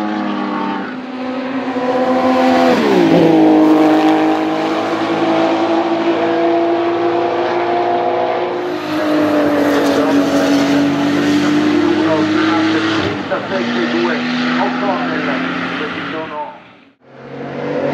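A race car engine roars loudly past, its pitch dropping as it goes by.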